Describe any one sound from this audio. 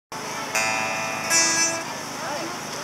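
A guitar chord is strummed and rings out through loudspeakers.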